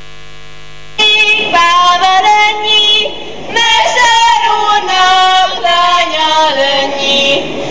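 A woman sings loudly with a bright, strong voice.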